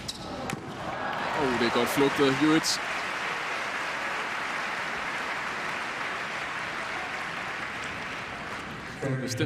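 A large crowd cheers and applauds loudly in an open arena.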